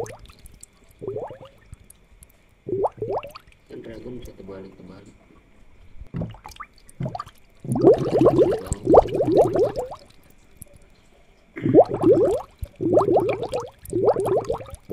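An aquarium air pump hums steadily.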